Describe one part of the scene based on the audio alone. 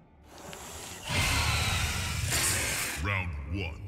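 A creature hisses and snarls.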